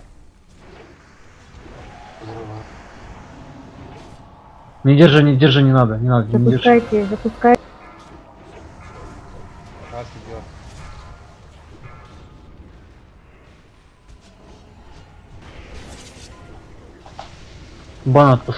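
Magic spells whoosh and crackle in a busy fantasy battle.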